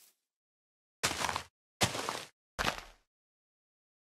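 Tall grass is torn up with loud rustling bursts.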